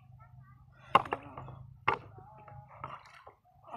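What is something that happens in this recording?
A fish thuds and flaps in a plastic tub.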